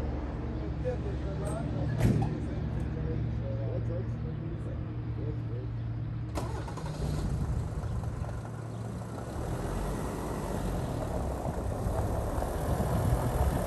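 A van's diesel engine idles close by.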